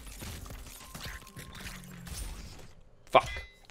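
Small video game guns fire in quick, muffled pops.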